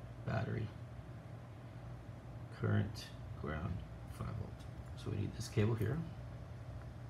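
A man speaks calmly into a close microphone, in short phrases.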